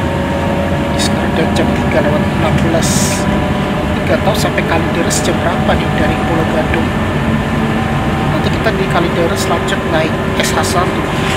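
A bus interior rattles and clicks as it moves.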